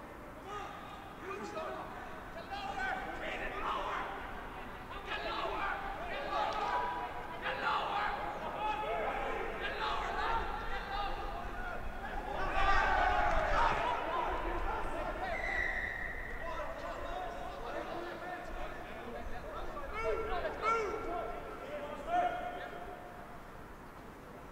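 Young men shout to each other outdoors on a playing field.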